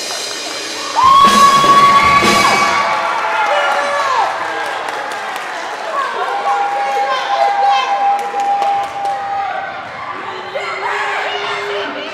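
A brass band plays long held notes in an echoing hall.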